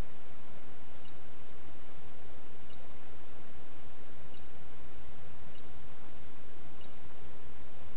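A hatchet strikes stone with dull knocks.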